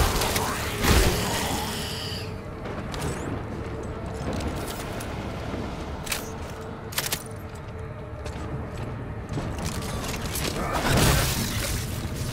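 An explosion bursts with a heavy blast.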